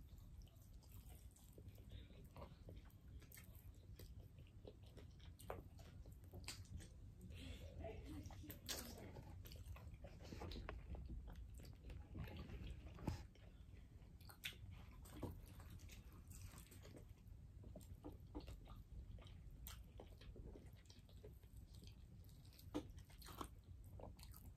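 Crispy food crunches close by as it is chewed.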